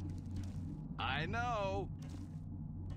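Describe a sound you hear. A middle-aged man speaks briefly through a microphone in a drawn-out, sing-song voice.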